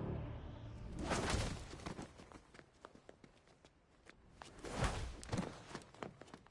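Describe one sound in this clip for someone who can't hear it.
Punches land with heavy, echoing thuds.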